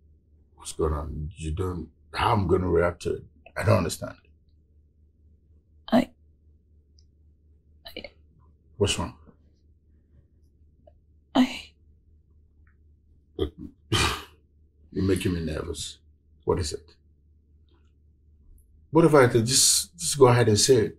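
A man speaks with emotion, close by.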